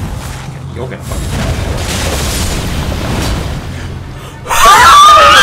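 Heavy blows and clashing noises ring out in a fight.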